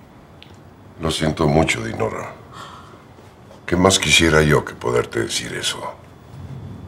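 An elderly man speaks in a low, firm voice, close by.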